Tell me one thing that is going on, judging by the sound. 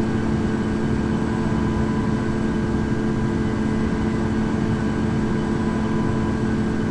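A jet engine drones steadily with a low rumble and a humming whine.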